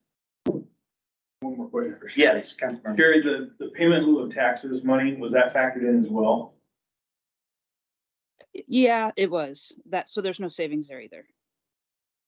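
An older man speaks calmly through a microphone in an online meeting.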